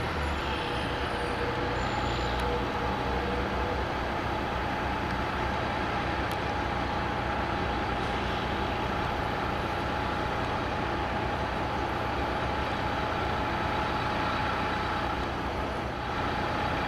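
A heavy truck engine idles and rumbles nearby.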